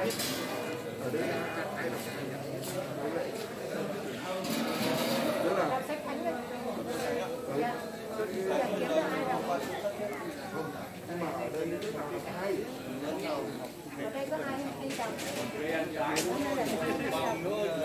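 Several men talk with one another nearby, outdoors.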